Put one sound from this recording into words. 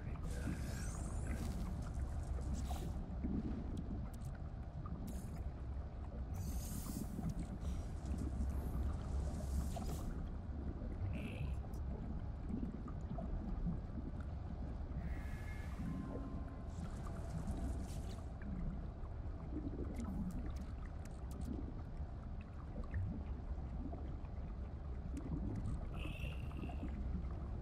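Soft electronic interface chimes and blips sound now and then.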